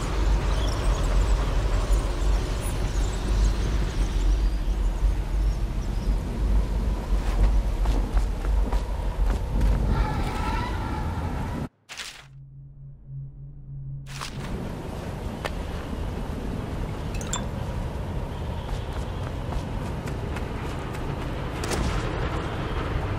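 Rain pours steadily outdoors, splashing on water.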